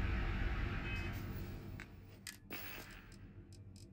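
Soft interface clicks tick a few times.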